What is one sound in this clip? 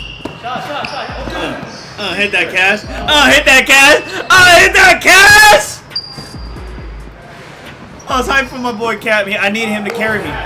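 A young man laughs loudly and talks excitedly into a close microphone.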